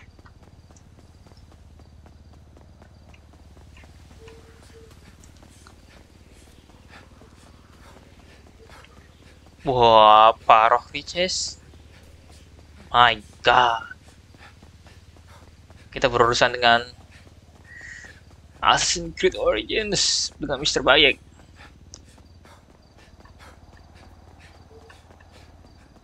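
Footsteps run quickly on hard pavement.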